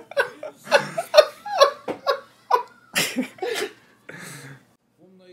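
Two men laugh loudly close to microphones.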